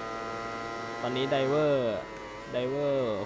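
A racing motorcycle engine drops in pitch as the rider shifts down.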